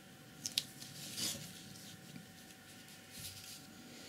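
A sheet of paper slides and rustles on fabric.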